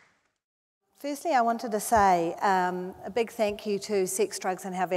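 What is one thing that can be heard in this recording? A woman speaks into a microphone in a large hall.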